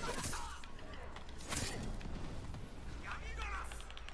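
Swords clash and ring in a fight.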